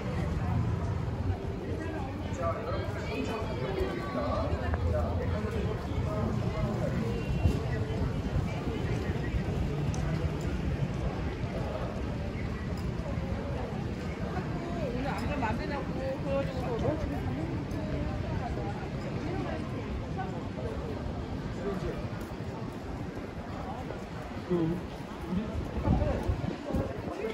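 Footsteps of passers-by scuff on pavement outdoors.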